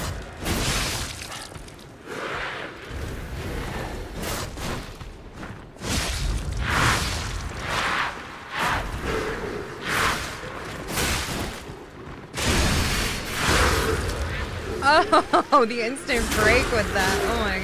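Blades clash and slash in quick, heavy strikes.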